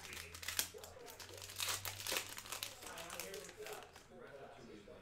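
A foil wrapper crinkles and tears as hands open it.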